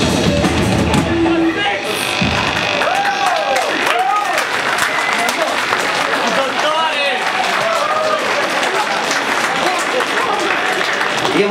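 A distorted electric guitar plays loudly.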